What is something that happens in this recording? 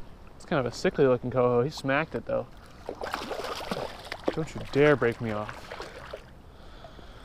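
Water splashes around feet wading in a shallow stream.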